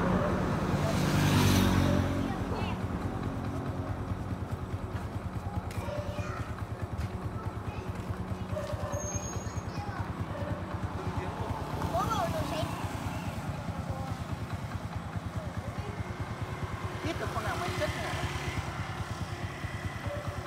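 A motorcycle engine idles nearby with a steady, rapid putter.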